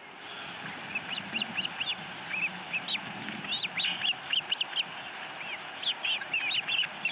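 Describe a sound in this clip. Osprey chicks chirp and peep in quick, high calls.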